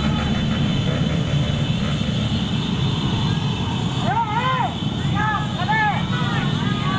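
A crowd murmurs outdoors nearby.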